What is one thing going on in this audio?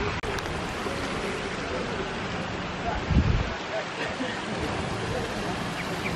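Men and women chat faintly in the distance outdoors.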